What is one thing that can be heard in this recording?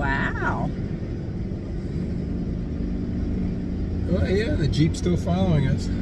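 A vehicle engine hums steadily inside a cabin.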